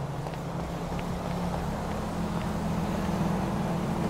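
Traffic rumbles along a nearby street.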